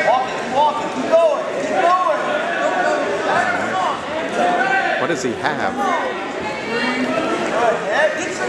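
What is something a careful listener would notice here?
Wrestlers thump and scuffle on a mat.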